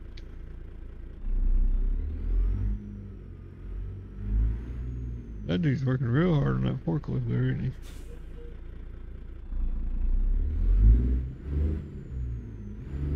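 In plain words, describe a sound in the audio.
A truck engine rumbles low and unevenly.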